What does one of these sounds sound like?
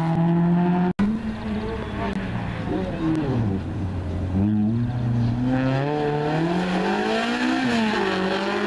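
Another rally car engine revs high and roars as it approaches at speed.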